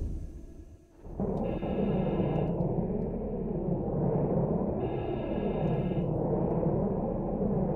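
Water rumbles and bubbles steadily all around.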